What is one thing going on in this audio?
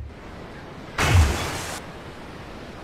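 Water splashes as a body jumps in.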